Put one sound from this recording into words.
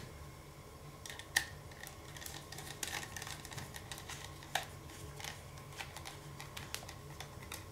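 A small screwdriver clicks and scrapes against metal screws.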